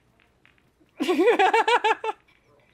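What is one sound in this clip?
A young woman laughs into a headset microphone.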